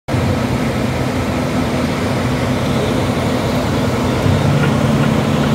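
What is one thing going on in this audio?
A bus engine idles with a low, steady rumble nearby.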